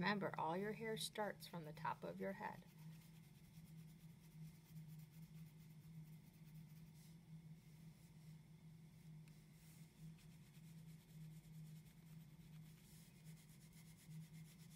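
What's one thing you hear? A crayon scratches softly on paper.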